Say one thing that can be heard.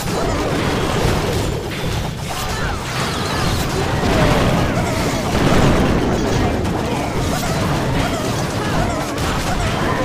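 Game explosions and cannon shots boom repeatedly during a battle.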